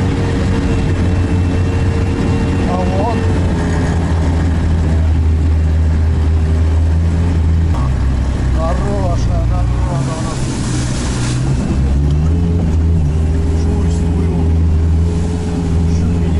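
A heavy vehicle's engine drones steadily from inside the cab.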